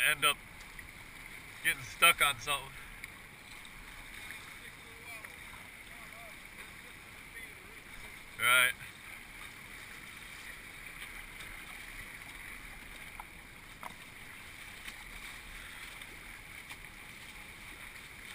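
A kayak paddle splashes into the water.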